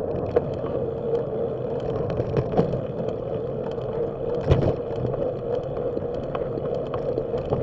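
Bicycle tyres roll over a paved path with small bumps and rattles.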